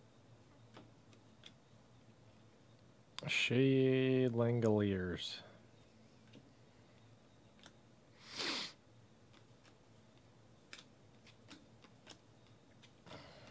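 Trading cards slide and tap softly against each other as they are flipped through.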